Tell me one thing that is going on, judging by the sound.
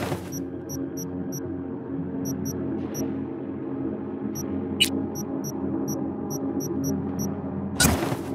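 Short high electronic beeps tick in quick bursts.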